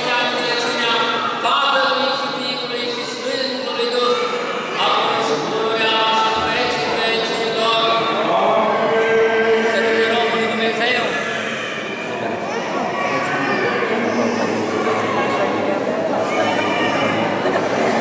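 A middle-aged man chants through a microphone in a large echoing hall.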